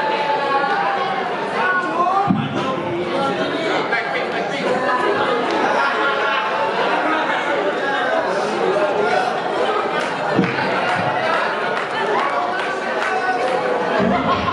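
A woman talks with animation through loudspeakers in an echoing hall.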